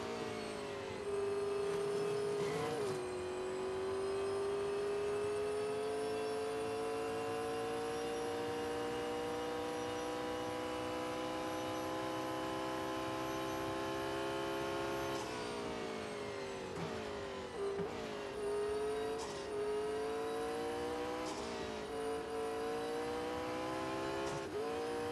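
A racing car engine roars at high revs, climbing slowly in pitch through the gears.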